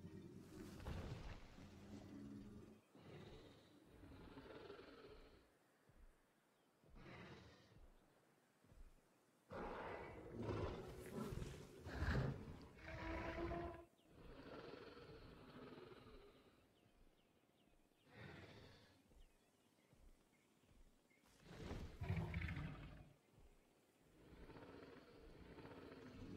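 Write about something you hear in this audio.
A large beast roars and growls in deep, rasping bursts.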